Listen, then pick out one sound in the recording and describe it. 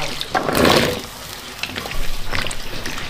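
A pot of broth bubbles and simmers.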